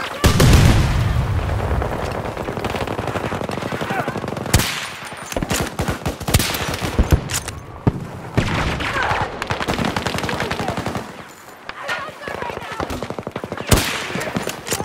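Loud rifle shots crack one at a time, with a short echo.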